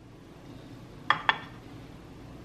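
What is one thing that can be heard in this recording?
A ceramic plate clinks onto a stone counter.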